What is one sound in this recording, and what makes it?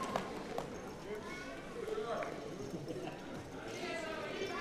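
A man speaks calmly through a microphone in a large hall.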